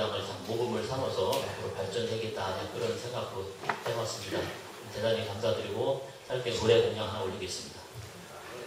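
A middle-aged man speaks calmly into a microphone through a loudspeaker in an echoing hall.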